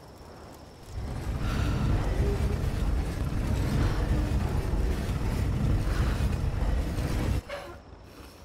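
A heavy hand crank turns a machine with a deep, steady rumble.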